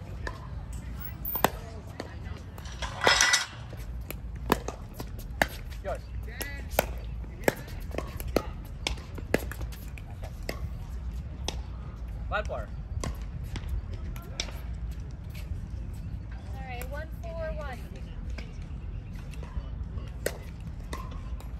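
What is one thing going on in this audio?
Paddles pop sharply against a plastic ball again and again outdoors.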